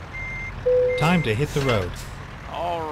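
A trailer couples to a truck with a metallic clank.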